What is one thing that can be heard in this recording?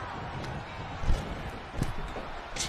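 A heavy body slams onto a wrestling ring mat with a thud.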